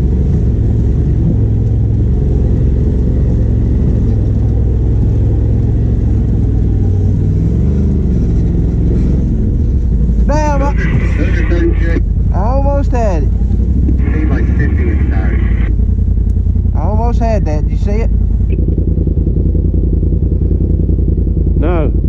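A vehicle engine rumbles steadily at low speed close by.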